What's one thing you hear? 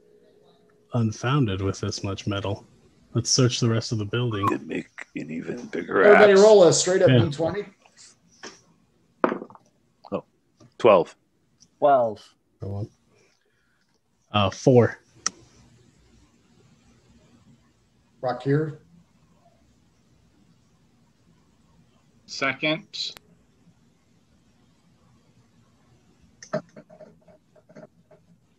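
Several men talk in turns over an online call, heard through their microphones.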